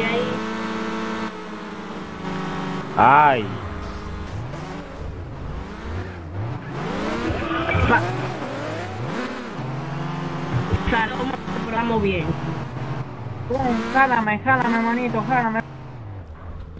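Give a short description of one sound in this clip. A car engine revs and hums as a vehicle speeds along.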